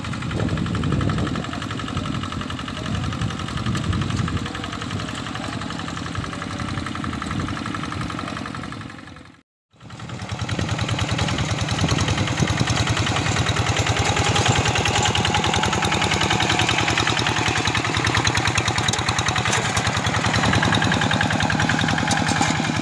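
A small tractor engine chugs steadily nearby.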